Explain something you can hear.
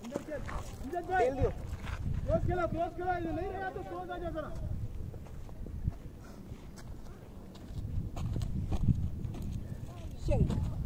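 Young men call out loudly across an open field.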